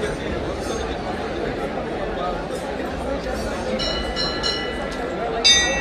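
A crowd of men murmurs and chatters close by.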